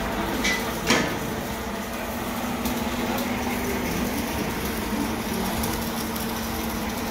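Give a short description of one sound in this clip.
Metal levers click and clunk as they are moved by hand.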